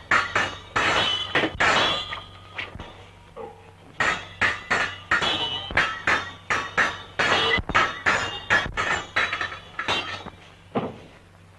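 Clashing sword blows ring out in quick succession.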